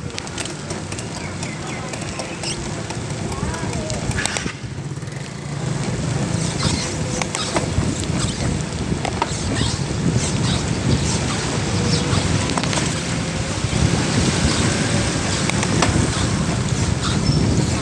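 Wind rushes past, heard while riding outdoors.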